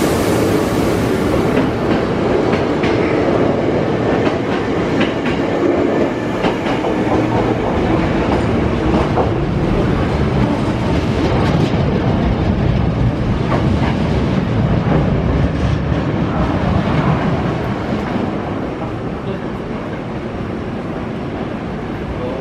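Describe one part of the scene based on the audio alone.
A train rumbles loudly as it pulls away and slowly fades.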